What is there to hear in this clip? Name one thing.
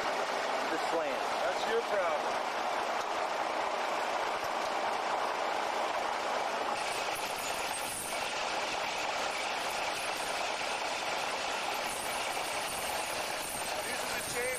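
A truck engine idles nearby with a steady rumble.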